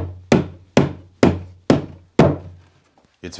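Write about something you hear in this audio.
A man knocks on a wooden box several times.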